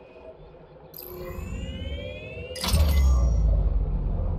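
A deep electronic whoosh swells and rumbles.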